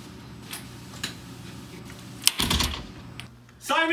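A door swings shut with a thud.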